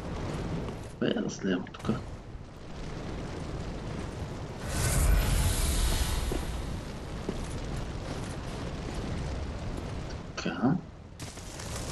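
Metal blades clash and strike in a fight.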